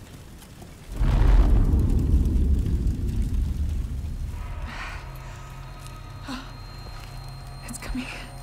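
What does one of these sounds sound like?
A deep, low rumble swells and slowly fades.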